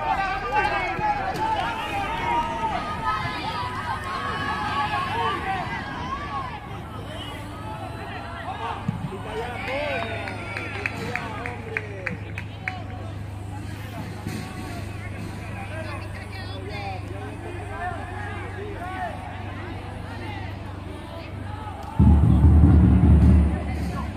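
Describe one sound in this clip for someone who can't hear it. Football players shout to each other across an open pitch outdoors.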